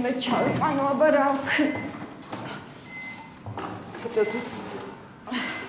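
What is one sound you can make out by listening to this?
A woman cries out in distress, close by.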